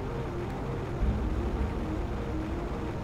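A waterfall rushes and roars close by.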